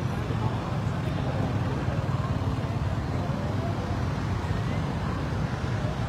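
Scooter engines hum and buzz as they ride past.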